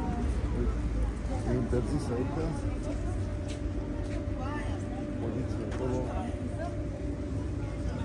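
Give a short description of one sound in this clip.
Men and women talk quietly nearby outdoors.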